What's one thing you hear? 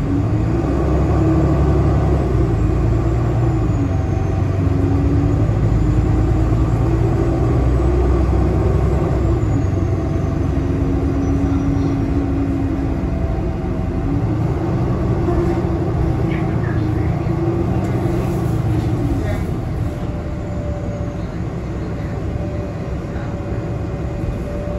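A bus rattles and rumbles over the road.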